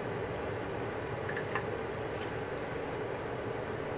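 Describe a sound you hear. A waffle drops onto a wooden plate with a soft thud.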